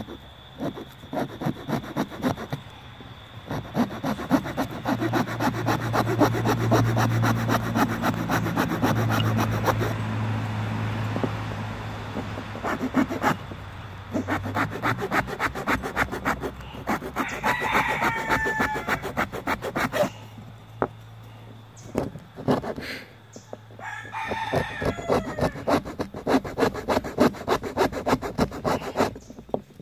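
A blade scrapes and shaves wood in quick, rhythmic strokes.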